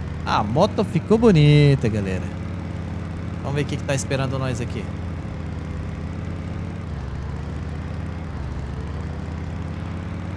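A motorbike engine hums steadily.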